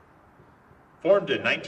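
A man shouts a loud drawn-out command outdoors.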